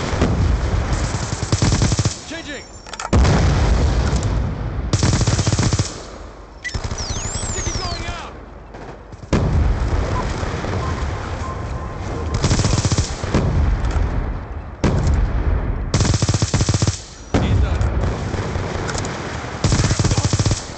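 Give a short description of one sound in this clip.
Rapid bursts of automatic gunfire ring out.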